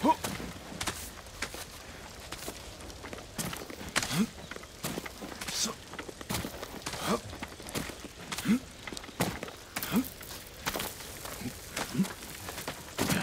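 Hands grab and scrape against rock in short thuds.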